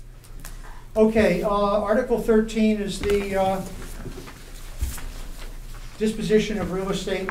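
An older man speaks calmly into a nearby microphone.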